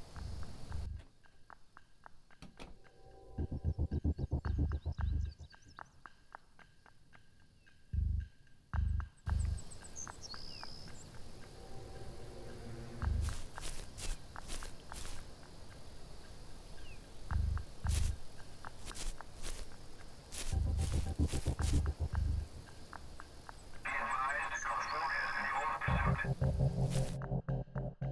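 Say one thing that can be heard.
Footsteps thud on a floor and then on outdoor ground.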